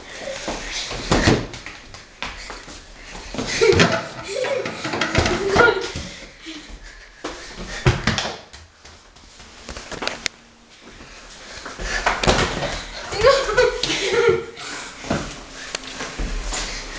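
Sneakers thump and scuff on a hard floor.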